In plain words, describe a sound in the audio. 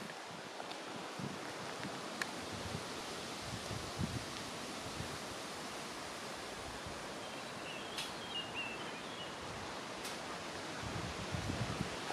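Wind rustles through tree leaves outdoors.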